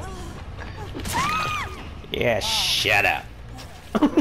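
A young woman screams in pain.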